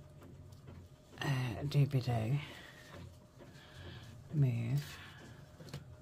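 Fabric rustles softly.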